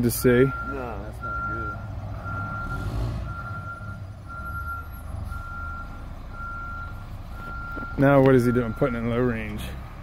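A concrete mixer truck's reversing alarm beeps.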